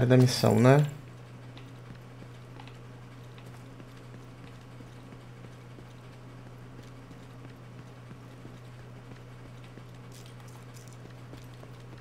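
Footsteps tread softly on stone pavement.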